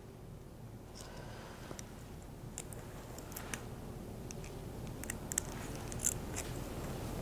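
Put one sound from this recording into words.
Plastic hair clips click softly.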